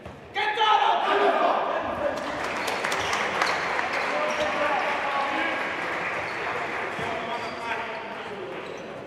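Young men shout and cheer together in a large echoing hall.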